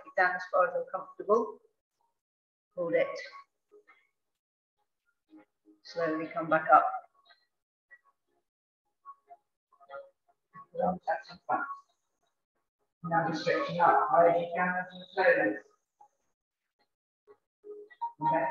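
A woman speaks calmly through a microphone, giving instructions.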